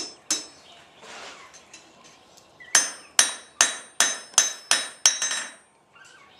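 A hammer rings sharply on an anvil in quick blows.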